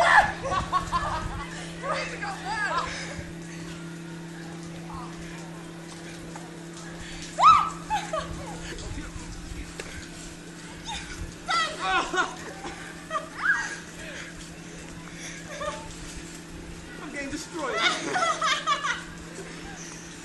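Young people shout and laugh outdoors during a snowball fight.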